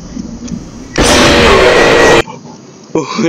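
A loud, harsh screech blasts suddenly and cuts off.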